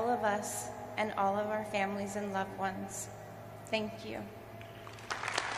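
A woman speaks calmly into a microphone in a large hall.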